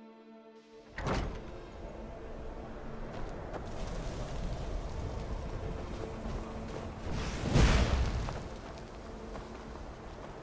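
Wind blows hard through a snowstorm.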